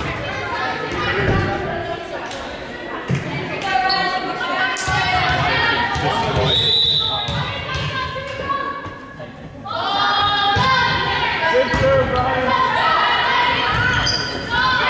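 Young women shout and call out across a large echoing gym.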